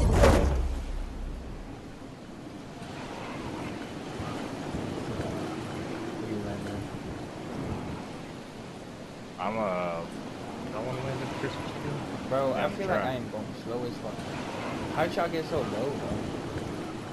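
Wind flows softly past a gliding figure.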